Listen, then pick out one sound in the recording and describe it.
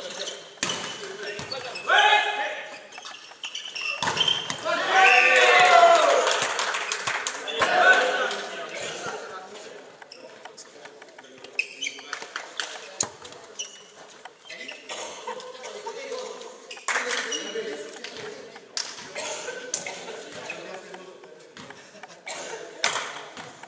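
A volleyball thuds against hands.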